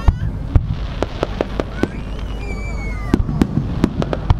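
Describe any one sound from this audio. Fireworks crackle and pop as they burst.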